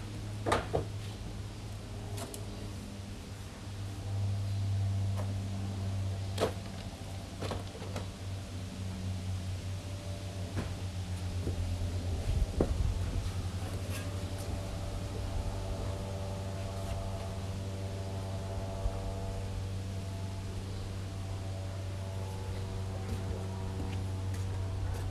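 Footsteps thud on a wooden deck close by.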